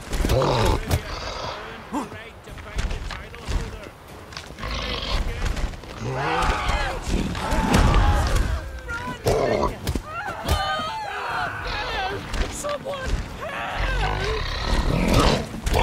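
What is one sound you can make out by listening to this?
Fists thump heavily against a creature's body.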